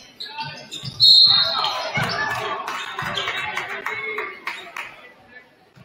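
A crowd in an echoing gym cheers loudly.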